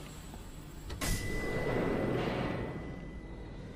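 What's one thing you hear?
A heavy elevator door clunks and slides open.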